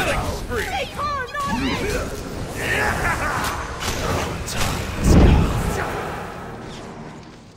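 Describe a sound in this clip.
Electric spell effects crackle and zap in bursts.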